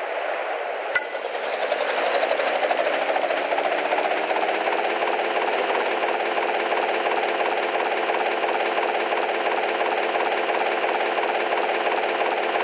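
A helicopter's rotor spins up and then chops steadily.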